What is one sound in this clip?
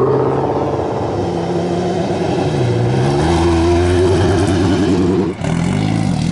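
A race car engine roars and revs as it drives past.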